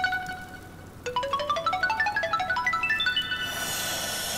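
A chime-like melody plays in quick rising notes.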